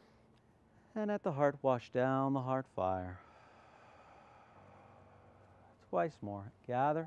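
A man speaks calmly and slowly.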